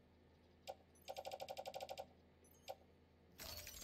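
Soft electronic beeps and clicks sound in quick succession.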